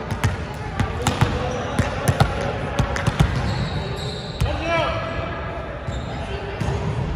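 A volleyball is hit and bounces in a large echoing gym.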